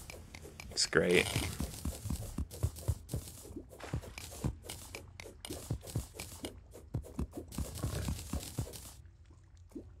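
Rapid digging sound effects from a video game tick and clatter.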